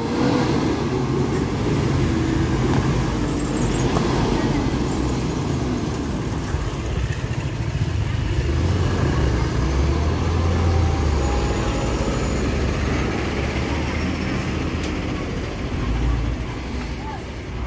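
A motorcycle engine putters past.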